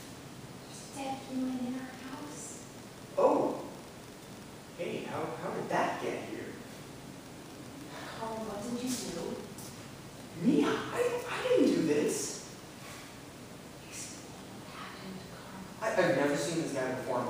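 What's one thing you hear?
A young man speaks with animation in an echoing hall.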